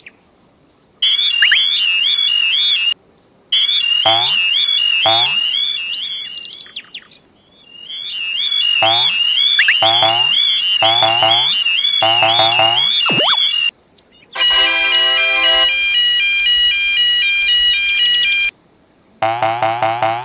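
A level crossing alarm sounds with a rapid, warbling tone that keeps stopping and starting.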